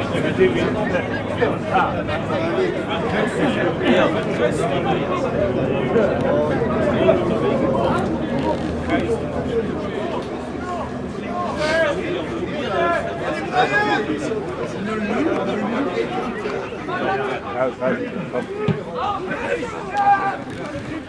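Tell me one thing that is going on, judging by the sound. Footballers shout to each other across an open pitch outdoors.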